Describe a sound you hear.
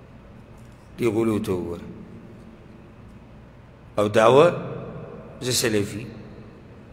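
A man speaks calmly into a microphone in short phrases, with pauses between them.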